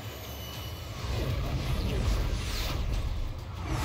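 A jet engine roars louder as it passes close by.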